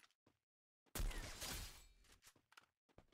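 A rifle fires a single loud shot that rings out and fades.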